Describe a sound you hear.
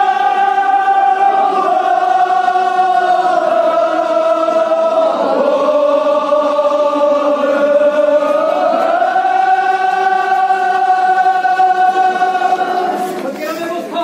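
A man chants in a long, drawn-out, wavering voice.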